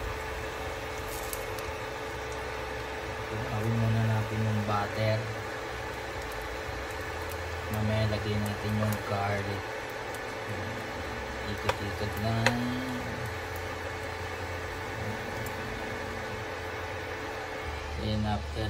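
A wooden spatula scrapes and taps against a pan.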